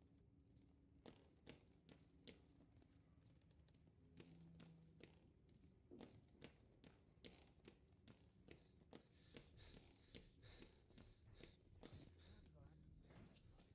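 Footsteps thud slowly on a wooden floor.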